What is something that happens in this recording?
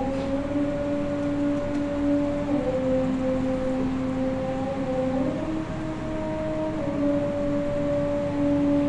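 An elderly man chants a recitation in long, drawn-out tones into a microphone.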